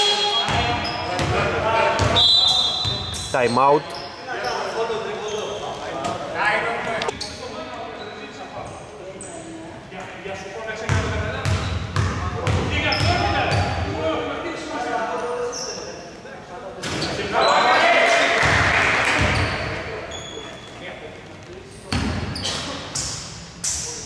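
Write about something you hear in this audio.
Male players call out and shout to each other across the hall.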